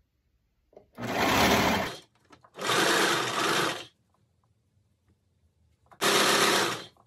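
An overlock sewing machine runs in short, fast whirring bursts.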